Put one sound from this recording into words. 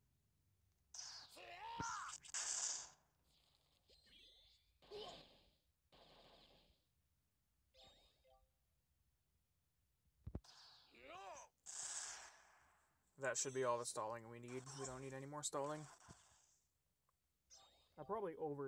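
Game sound effects whoosh and whack in bursts during a fight.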